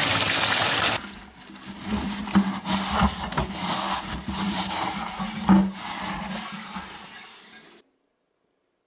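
A hand swishes and splashes water in a bucket.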